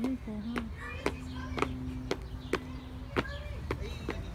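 A child's shoes slap on pavement while hopping.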